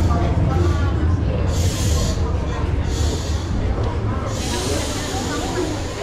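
A metro train rumbles and squeals as it pulls into a station.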